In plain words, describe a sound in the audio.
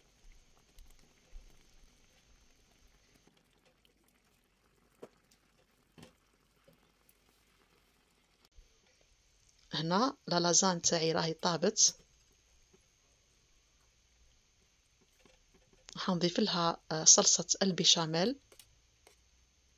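A spatula stirs and scrapes softly through thick sauce in a pot.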